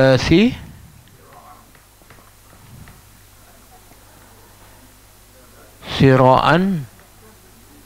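A middle-aged man recites in a melodic, drawn-out voice through a lapel microphone.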